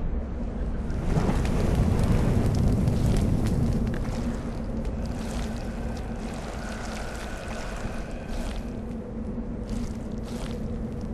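Flames whoosh up and roar, then crackle down.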